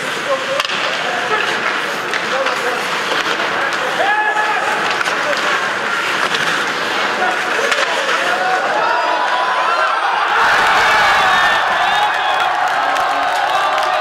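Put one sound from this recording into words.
A crowd in a large echoing arena cheers and roars, growing louder near the end.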